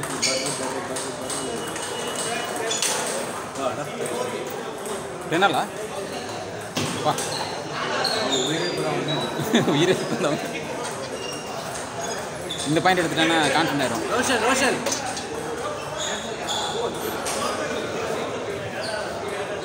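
Men talk and call out nearby in an echoing hall.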